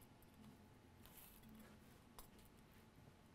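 A small tool scrapes lightly across a circuit board.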